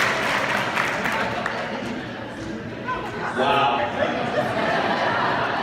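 A crowd of guests murmurs and chatters in the background.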